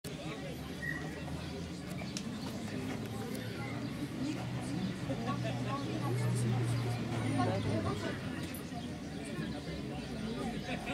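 Children and adults chatter in the distance outdoors.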